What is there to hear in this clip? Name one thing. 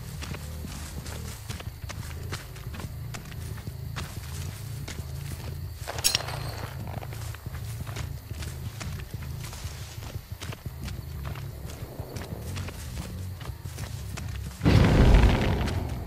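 Heavy footsteps thud steadily on soft ground.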